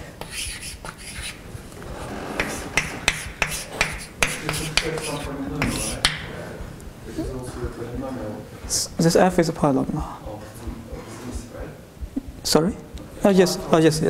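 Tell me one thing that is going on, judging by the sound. A man lectures calmly in an echoing room.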